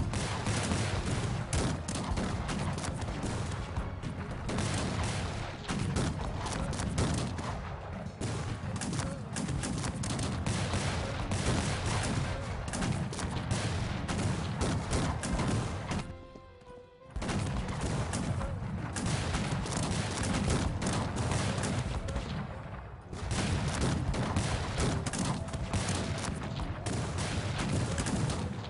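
Muskets fire in rapid, crackling volleys.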